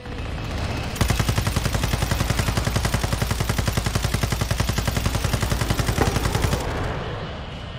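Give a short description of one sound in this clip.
A heavy machine gun fires in a rapid, steady burst.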